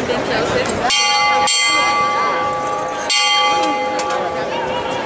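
A hand bell rings out clearly.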